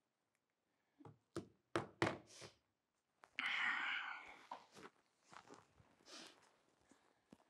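A young woman sobs and sniffles close by.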